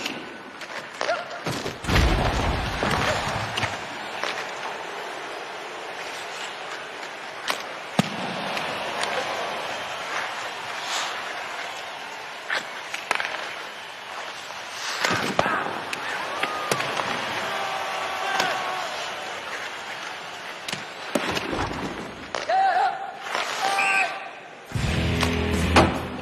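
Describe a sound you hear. Hockey sticks click against a puck.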